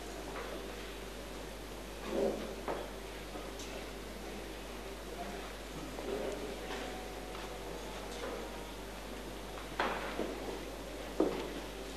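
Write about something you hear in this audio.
A large congregation murmurs and shuffles in a large echoing hall.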